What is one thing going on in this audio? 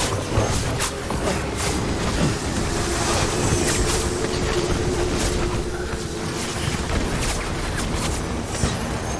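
Gunfire cracks in sharp bursts.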